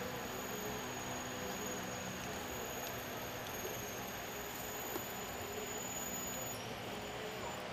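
A goat chews close by.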